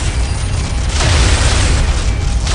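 Laser beams blast with a roaring hum.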